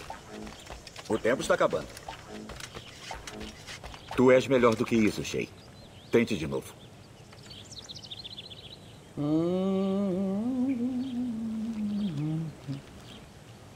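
A man talks calmly into a microphone, close by.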